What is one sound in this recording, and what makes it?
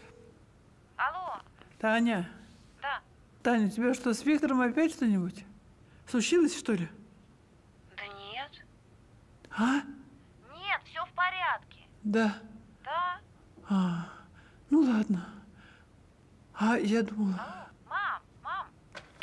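An older woman talks into a phone with animation, close by.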